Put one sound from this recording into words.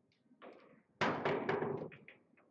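Billiard balls knock together and roll across the table.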